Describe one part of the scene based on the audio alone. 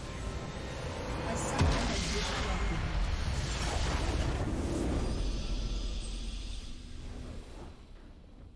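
Magic blasts and impacts crackle loudly in a game battle.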